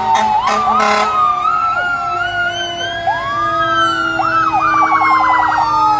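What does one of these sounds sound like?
Sirens wail and yelp as a fire truck passes.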